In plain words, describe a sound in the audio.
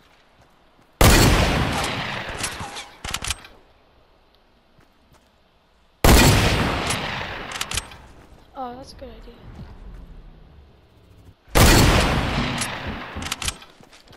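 A shotgun fires loud booming blasts that ring out and fade.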